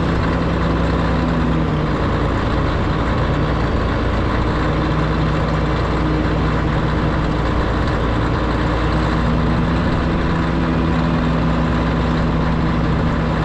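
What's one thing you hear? Metal crawler tracks clank and squeal as a bulldozer moves along.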